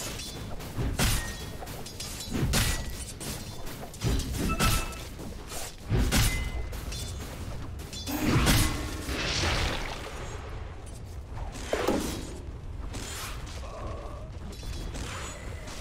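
Spell blasts and sword strikes clash in a game battle, in sharp repeated bursts.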